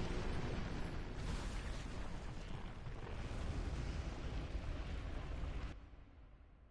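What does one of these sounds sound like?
A huge creature lets out a loud, deep rumbling roar that then fades away.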